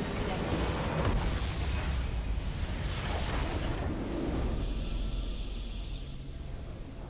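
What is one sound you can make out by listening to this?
A large crystal structure explodes with a deep booming roar.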